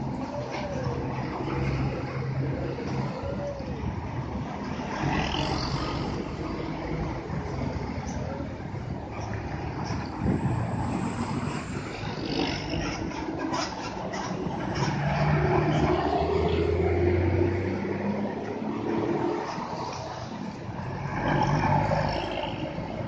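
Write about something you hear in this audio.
Bus engines rumble and roar as large buses drive past close by.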